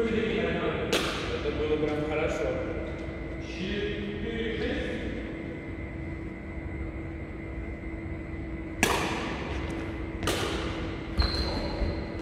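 A shuttlecock is struck sharply with a racket in an echoing hall.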